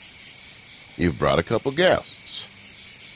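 A second man answers in a friendly voice.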